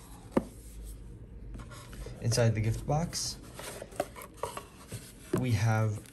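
Cardboard slides and scrapes as a box is handled.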